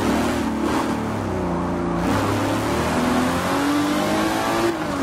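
A racing car engine drops in pitch, then revs up steadily as the car speeds up.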